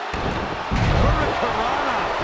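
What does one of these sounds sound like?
A body slams onto a mat with a heavy thud.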